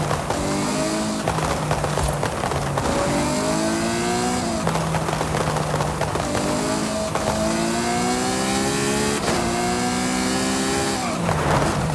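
A sports car engine roars and revs up through the gears, dropping in pitch at each gear change.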